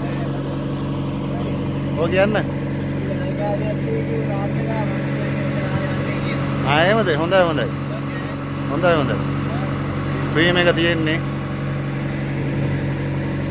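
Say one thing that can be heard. Water splashes along the hull of a moving boat.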